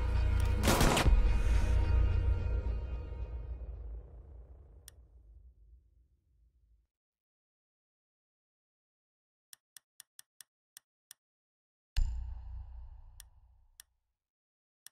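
A deep booming swoosh rings out and slowly fades.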